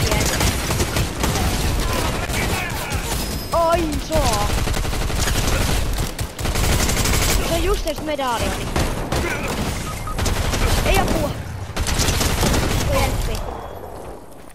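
Gunshots fire in rapid, loud bursts.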